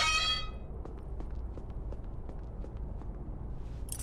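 Footsteps walk across a wooden floor.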